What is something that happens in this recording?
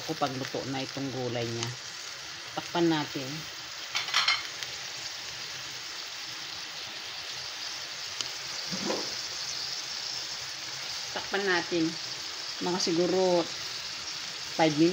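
Food sizzles steadily as it fries in a hot pan.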